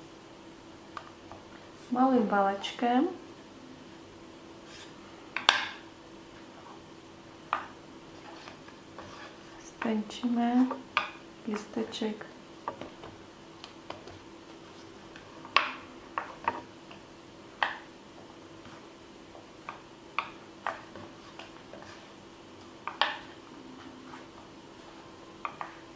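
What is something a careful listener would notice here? A small plastic tool taps and clicks against a hard board.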